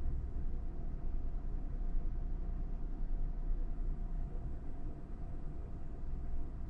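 A stationary train hums with a low, steady rumble.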